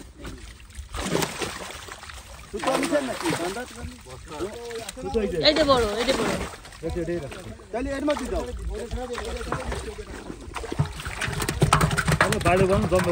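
Fish thrash and splash in shallow water.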